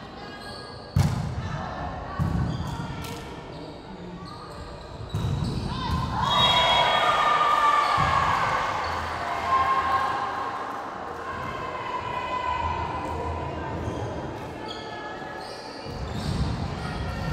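A volleyball is hit with sharp smacks in a large echoing gym.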